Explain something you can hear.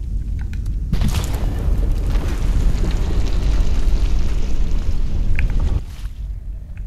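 A deep rumble roars steadily.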